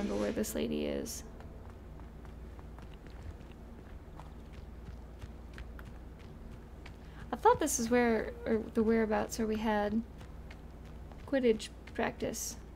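A young woman talks casually and with animation close to a microphone.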